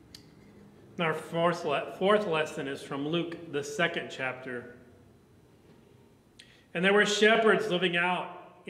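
A middle-aged man speaks calmly into a microphone in an echoing room.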